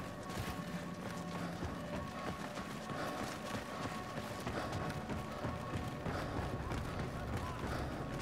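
Footsteps patter as soldiers run.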